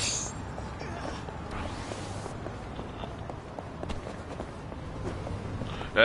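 Footsteps run quickly on pavement.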